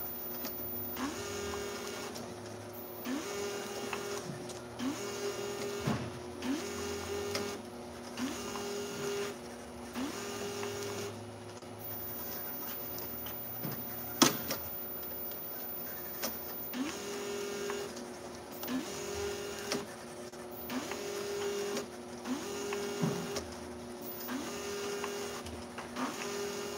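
A labelling machine's motor whirs up in short, regular bursts.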